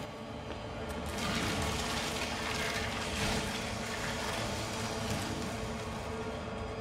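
A shredding machine grinds and churns steadily.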